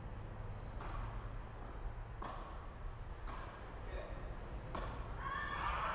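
Tennis balls are struck with rackets in a rally, echoing in a large hall.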